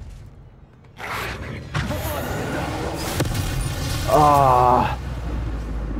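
A magic spell crackles and whooshes as it is cast.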